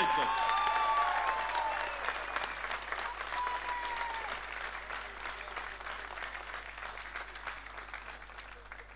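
A large crowd cheers and whistles outdoors, then fades.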